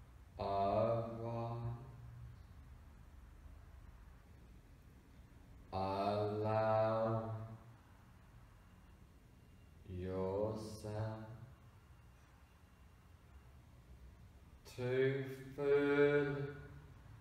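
A man speaks close by in slow, soothing phrases with long pauses.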